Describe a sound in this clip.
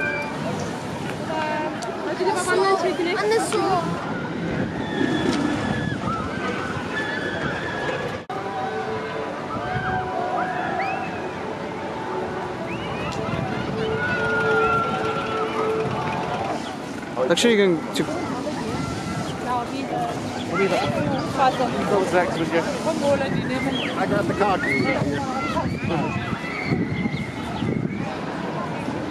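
A roller coaster train rumbles along its track in the distance.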